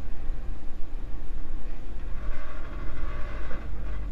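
A metal trailer hitch clanks down onto a ball.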